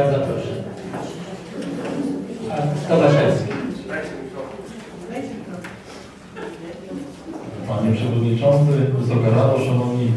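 A man speaks steadily through a microphone in a room with some echo.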